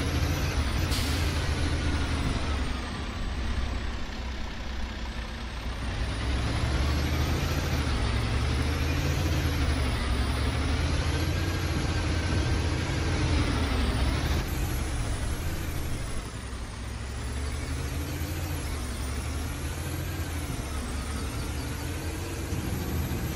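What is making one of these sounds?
A Cummins X15 inline-six diesel truck engine rumbles, rising and falling in pitch.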